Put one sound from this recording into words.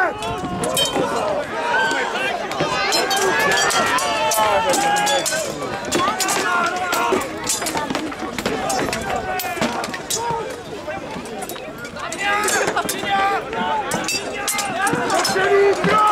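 A crowd of men shouts and yells loudly outdoors.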